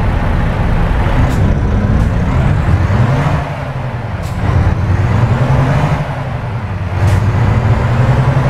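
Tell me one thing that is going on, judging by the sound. A truck engine revs and shifts gears as the truck pulls away.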